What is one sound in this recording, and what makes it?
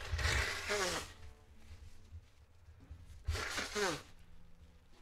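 A young man laughs close to a microphone.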